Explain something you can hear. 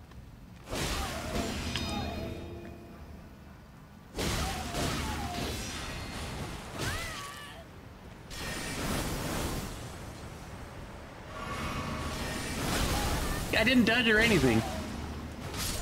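Blades clash and slash with heavy metallic impacts.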